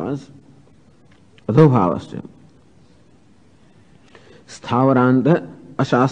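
An elderly man chants slowly, with pauses between phrases.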